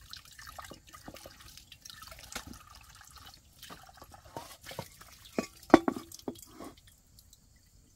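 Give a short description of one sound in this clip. Dishes clink and knock together.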